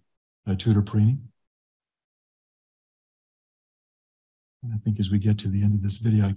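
A man speaks calmly into a microphone, heard over an online call.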